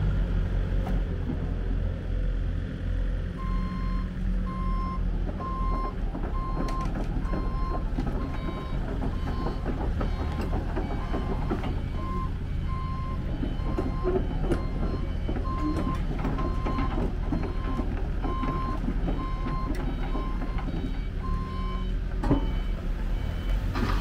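An excavator engine idles with a low, steady rumble.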